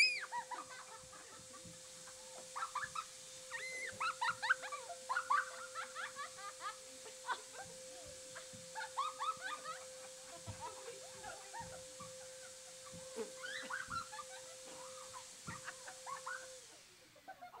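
Two young women laugh and shout playfully.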